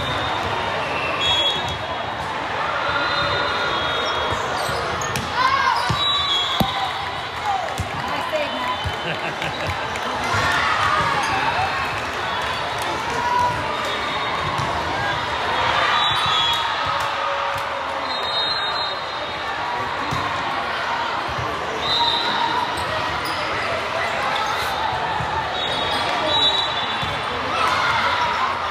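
Young women cheer and call out across a large echoing gym.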